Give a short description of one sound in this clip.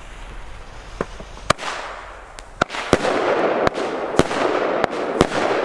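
Firework shots pop and bang sharply, one after another.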